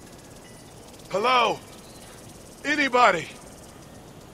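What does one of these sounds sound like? A man calls out loudly from a distance.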